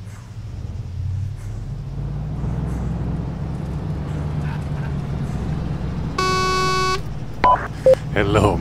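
A heavy vehicle's engine rumbles steadily while driving.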